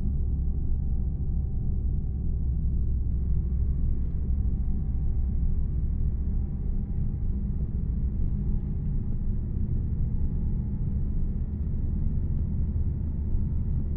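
Tyres roll along a road.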